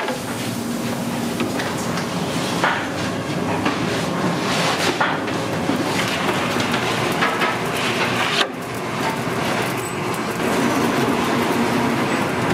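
Wooden peels scrape and knock against a brick oven floor.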